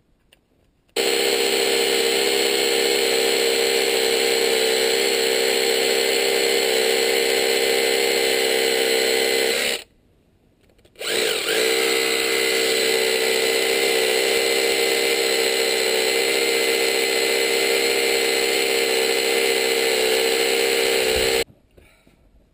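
A hammer drill bores into stone.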